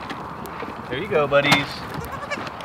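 Goats bleat nearby.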